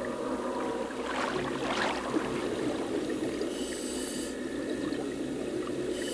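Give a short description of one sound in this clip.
Bubbles rush and churn underwater.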